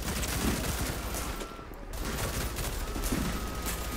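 Bullets smack into a wall and debris clatters.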